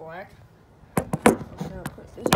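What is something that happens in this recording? Something knocks against a hard tabletop.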